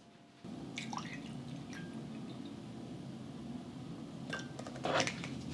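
Milk pours and splashes into a glass cup.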